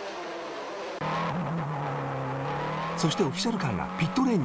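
A race car engine roars steadily from inside the car.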